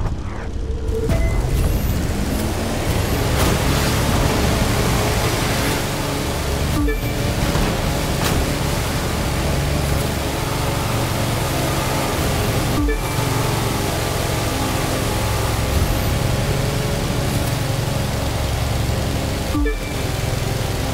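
A powerboat engine roars steadily at high speed.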